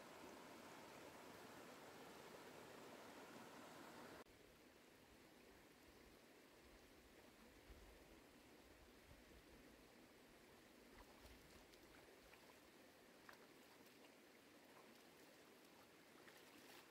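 A shallow stream ripples steadily over stones.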